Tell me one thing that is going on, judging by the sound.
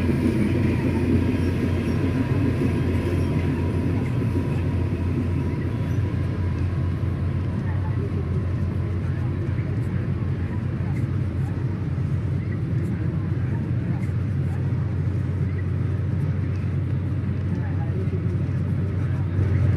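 A diesel train engine rumbles steadily as the train pulls away.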